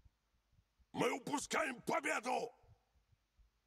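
A young man speaks briefly, close to a microphone.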